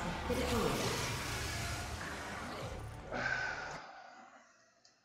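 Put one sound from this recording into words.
Game sound effects rumble and crash.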